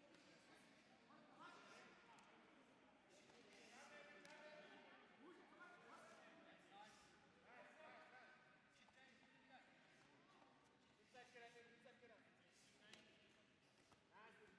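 A crowd of men and women chatter and call out in a large echoing hall.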